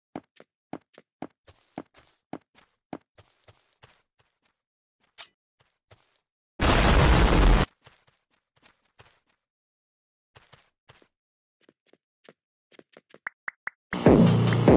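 Game footsteps tap quickly and evenly.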